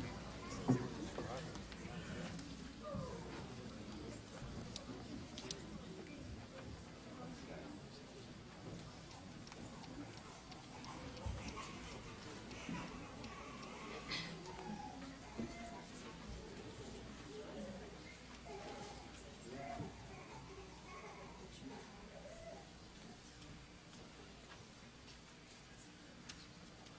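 A crowd of adults and children murmurs and chatters in a large, echoing room.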